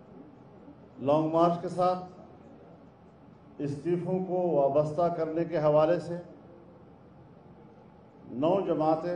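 An elderly man speaks slowly and deliberately into microphones, with pauses between phrases.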